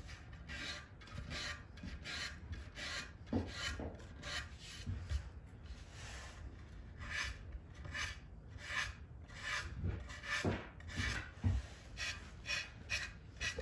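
Sandpaper rubs back and forth on wood in quick, rasping strokes.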